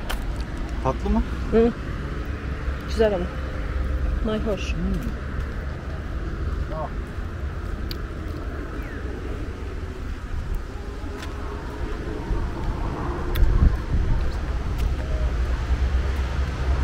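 Footsteps walk on stone paving and climb steps.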